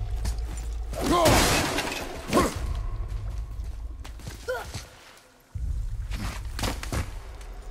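Hands scrape and thud while climbing up rock.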